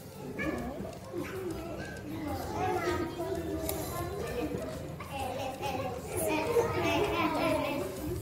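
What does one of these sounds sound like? Young girls chatter and talk with each other close by.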